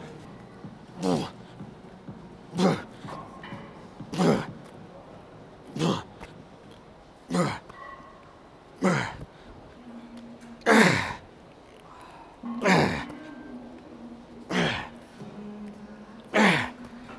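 A man breathes out hard and grunts with each lift, at a steady pace.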